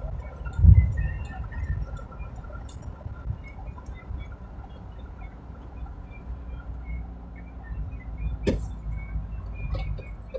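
A car's engine hums steadily with road noise from inside the car.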